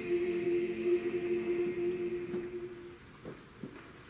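A choir sings a held chord that dies away in a large echoing hall.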